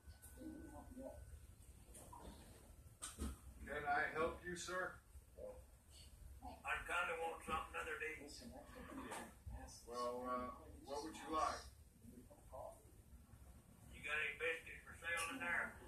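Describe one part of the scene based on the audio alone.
An older man talks calmly through a television speaker.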